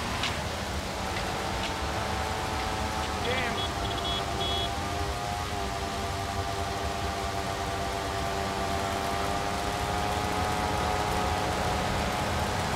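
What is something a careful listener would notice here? Car engines hum as cars drive past on a road.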